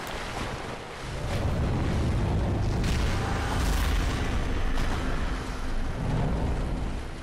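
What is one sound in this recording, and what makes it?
A deep rumbling roar swells.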